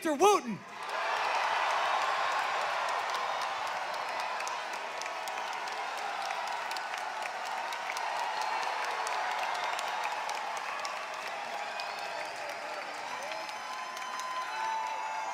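A large crowd claps and applauds.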